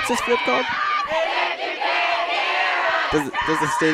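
A crowd of young spectators cheers and shouts nearby.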